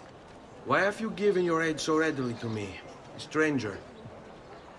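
A man asks a question calmly, close by.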